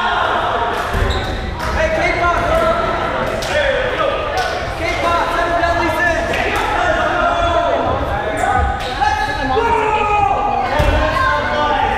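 Dodgeballs thump on a wooden floor.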